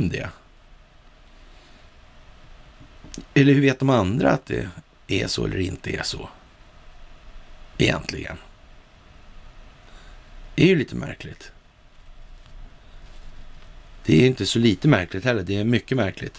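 A middle-aged man speaks calmly and deliberately into a close microphone, with pauses between phrases.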